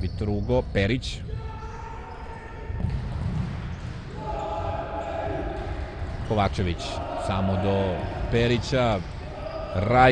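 A ball is kicked with dull thuds on a hard indoor court.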